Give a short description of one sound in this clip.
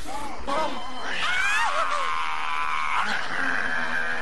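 A woman screams loudly in terror.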